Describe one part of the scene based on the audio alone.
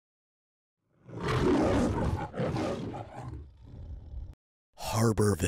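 A lion roars loudly.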